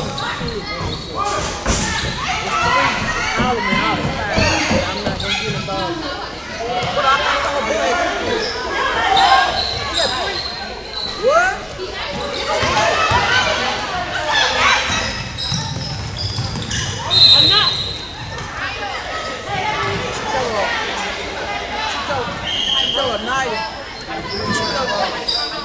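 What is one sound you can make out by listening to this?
Spectators and players shout and chatter in the echoing hall.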